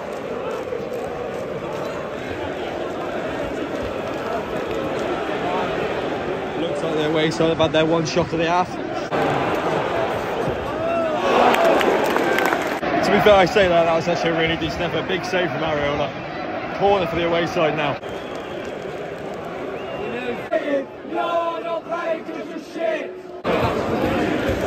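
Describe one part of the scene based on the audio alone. A large stadium crowd roars and murmurs throughout.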